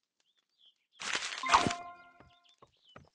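A bright game chime rings out with a whoosh.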